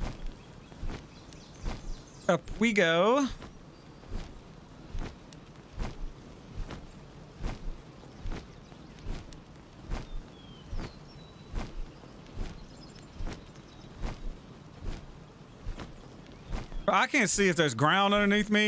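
Large wings flap with steady, rhythmic whooshes.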